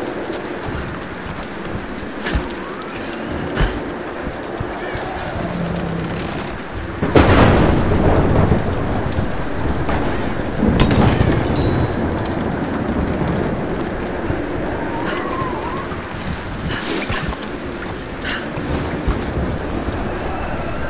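A torch flame crackles and flutters.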